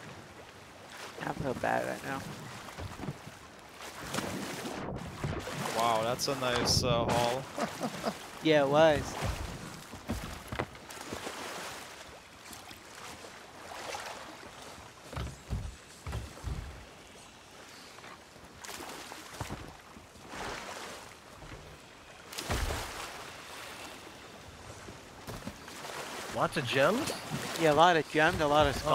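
Ocean waves wash and splash.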